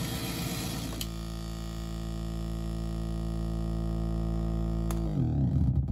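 Patch cables click as they are plugged in.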